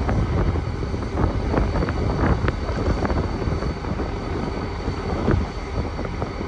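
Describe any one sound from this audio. A diesel locomotive rumbles slowly along the tracks nearby.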